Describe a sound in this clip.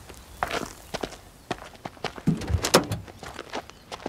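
Footsteps fall on a paved road.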